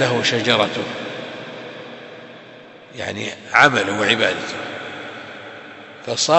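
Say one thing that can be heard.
An elderly man preaches with emotion, heard through a microphone with a reverberant echo.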